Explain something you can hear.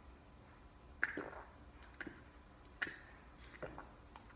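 A teenage boy gulps a drink.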